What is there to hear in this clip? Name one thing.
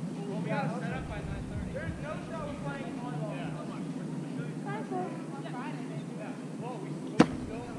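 Young women call out to each other at a distance outdoors.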